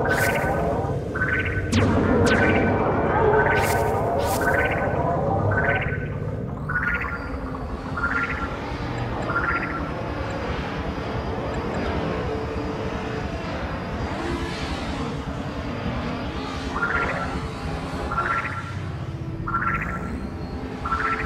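A spaceship's laser beam zaps in quick, repeating pulses.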